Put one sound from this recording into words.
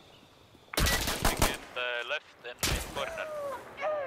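Gunshots fire in rapid bursts at close range.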